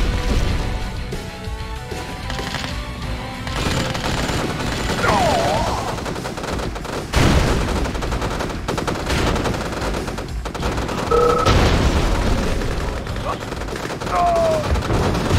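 Heavy vehicles rumble as they roll over the ground.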